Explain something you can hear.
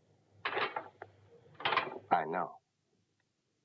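A younger man speaks briefly in reply.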